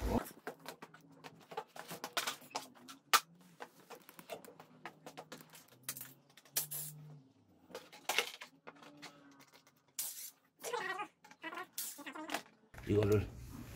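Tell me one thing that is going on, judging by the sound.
Plastic body panels clatter and knock as they are handled.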